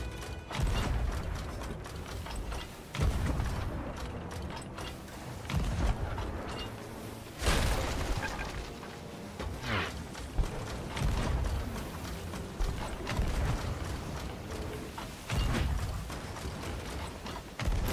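Cannons fire in loud booming blasts, again and again.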